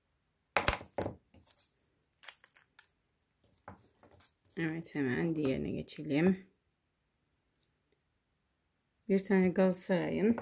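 Metal keyrings clink softly as a keychain is picked up and set down.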